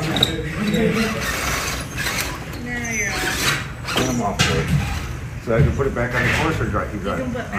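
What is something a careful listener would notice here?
A small electric motor whirs as a toy truck crawls over rocks.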